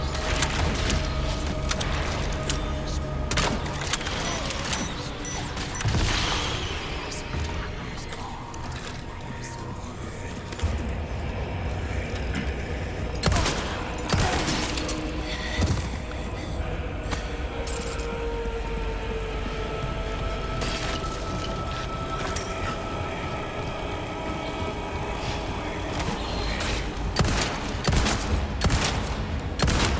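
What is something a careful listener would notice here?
A pistol fires loud shots that echo.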